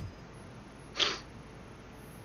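An electronic scanner beeps.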